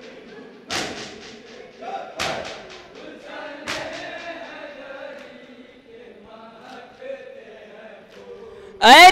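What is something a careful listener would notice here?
A group of men chant along in unison.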